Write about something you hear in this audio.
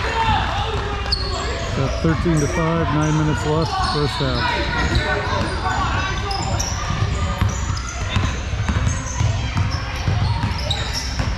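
Spectators chatter and call out in a large echoing gym.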